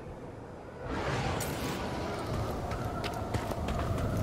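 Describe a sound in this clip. Footsteps splash quickly on wet ground.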